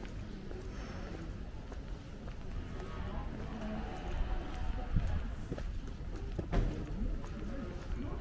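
Footsteps tap on cobblestones outdoors.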